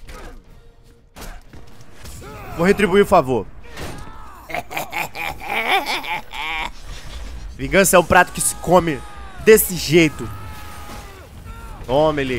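Game punches and energy blasts crash and boom.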